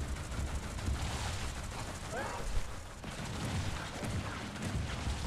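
Small weapons fire with sharp zaps.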